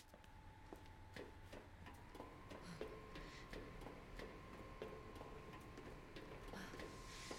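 Footsteps clank on metal grating and stairs.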